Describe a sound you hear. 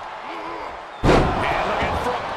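A heavy body slams down hard onto a wrestling ring mat.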